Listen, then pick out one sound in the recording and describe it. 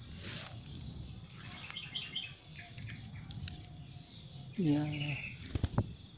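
Leaves rustle as a hand pushes through dense plants.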